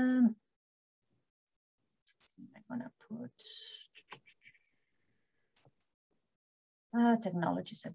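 A woman speaks calmly through an online call microphone, with pauses.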